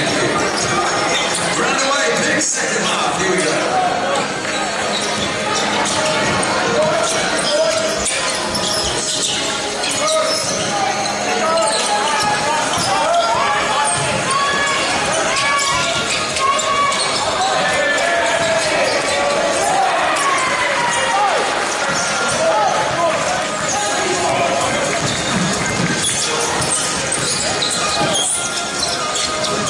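A basketball bounces with dull thuds.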